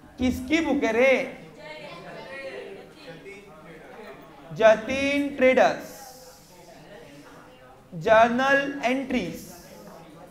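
A young man speaks calmly and clearly into a close microphone, in short bursts with pauses.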